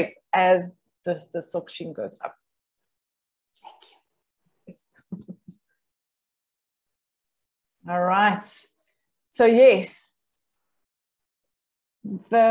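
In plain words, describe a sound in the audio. A woman speaks with animation over an online call, with pauses between phrases.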